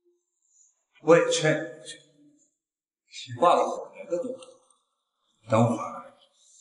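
A young man speaks in a low, taunting voice, close by.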